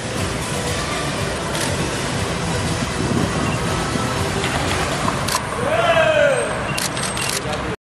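A group of young men and women cheer and shout outdoors.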